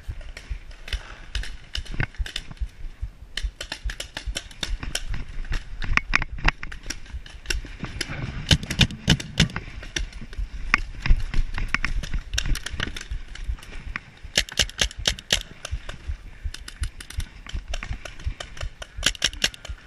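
Paintball guns pop in rapid bursts nearby and farther off.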